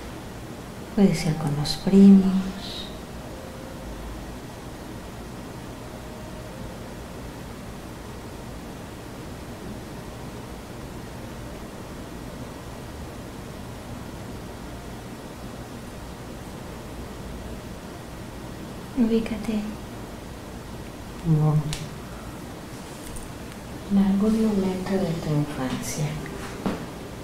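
A man speaks weakly in short bursts, close by.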